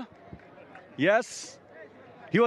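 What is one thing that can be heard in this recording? A man speaks cheerfully into a microphone close by.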